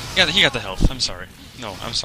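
Flames roar and crackle.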